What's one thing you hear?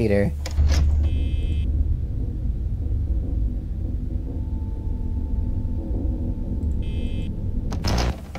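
An electronic beep buzzes briefly.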